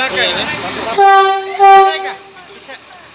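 A locomotive horn blares loudly and briefly.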